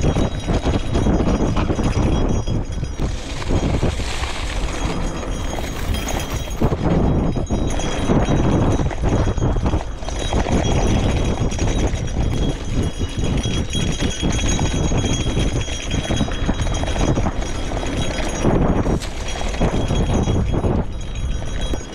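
Bicycle tyres rumble and rattle over a bumpy dirt trail.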